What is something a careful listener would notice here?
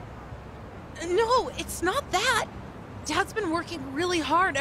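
A young boy speaks earnestly, close by.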